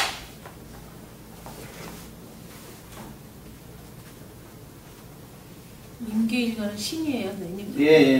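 A man wipes a whiteboard with an eraser.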